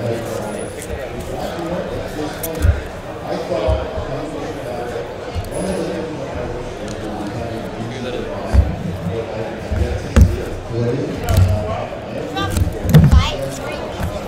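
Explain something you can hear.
Plastic card cases clack on a table.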